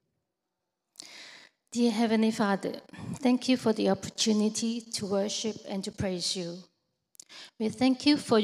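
A woman speaks calmly into a microphone, heard through loudspeakers.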